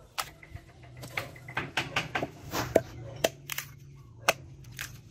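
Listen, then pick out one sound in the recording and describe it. A hammer knocks on a log.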